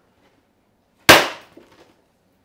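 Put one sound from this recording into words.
A plastic sheet snaps sharply in two.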